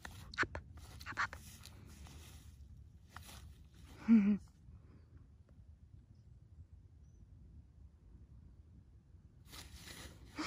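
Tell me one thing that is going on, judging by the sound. Tall grass rustles as a dog bounds through it.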